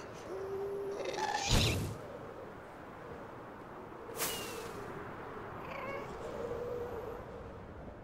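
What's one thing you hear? A monster wails with a high, eerie cry.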